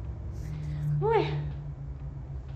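A young woman lets out a short exclamation.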